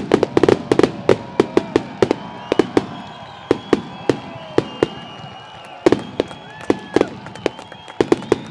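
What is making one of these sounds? Whistling fireworks rise and fade.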